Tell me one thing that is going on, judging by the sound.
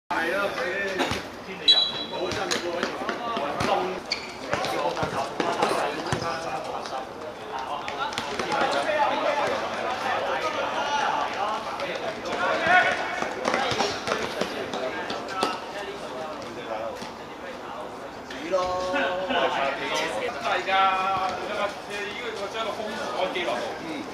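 Trainers squeak and patter on a hard court.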